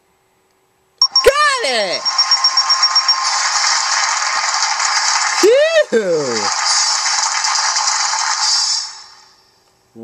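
A cheerful win jingle plays from a slot game.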